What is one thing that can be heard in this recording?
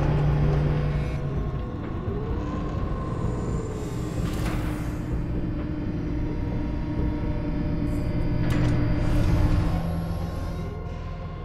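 Footsteps thud steadily on a hard surface.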